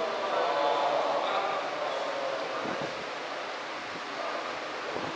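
A young man recites in a singing voice into a microphone, heard through loudspeakers in a reverberant space.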